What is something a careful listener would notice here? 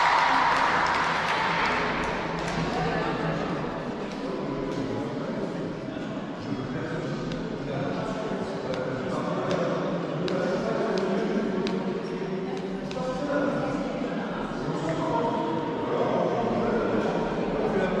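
Young women talk and call out to each other in an echoing hall.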